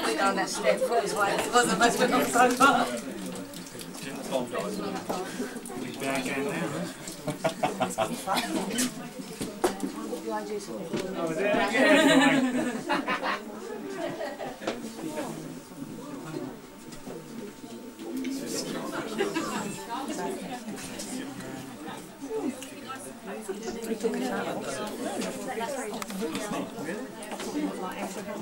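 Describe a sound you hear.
A man speaks calmly to a group nearby.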